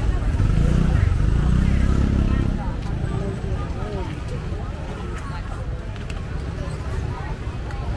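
Voices of a crowd chatter nearby, outdoors in a busy street.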